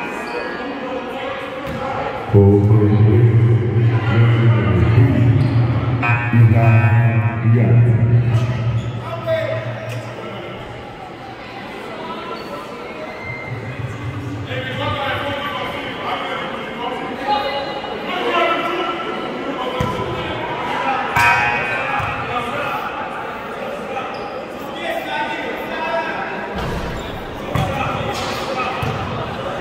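Young men talk and call out across a large echoing gym.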